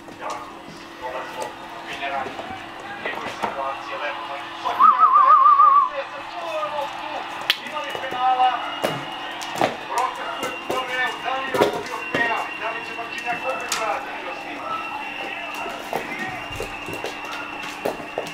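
A puppy whimpers and yips excitedly.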